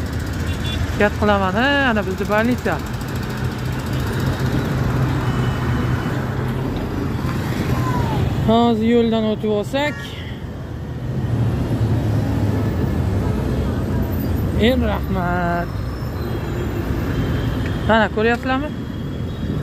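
Traffic rumbles steadily past outdoors.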